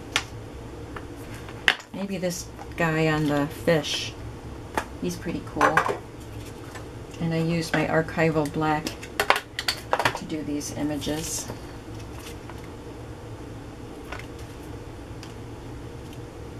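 A stamp block knocks softly on a table and presses onto card.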